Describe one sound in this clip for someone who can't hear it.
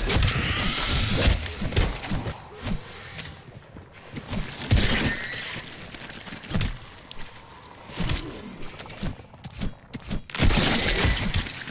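Gunshots and explosions boom in quick bursts.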